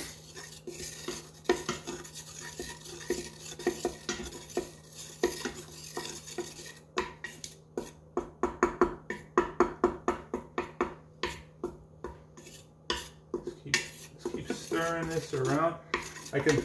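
A wooden spatula scrapes and taps against a metal pot.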